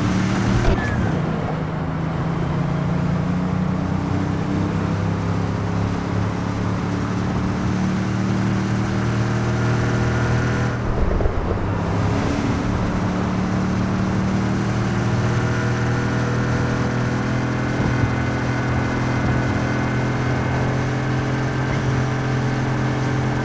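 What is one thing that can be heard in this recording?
A car engine hums steadily at speed.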